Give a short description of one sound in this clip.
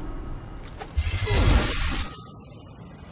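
A heavy blow lands with a deep rumbling crash.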